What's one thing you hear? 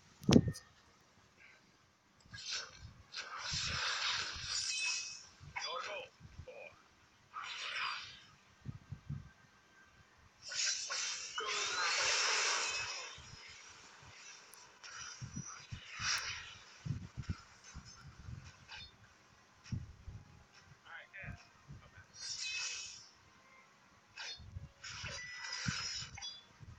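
Fantasy video game spell effects zap and whoosh in short bursts.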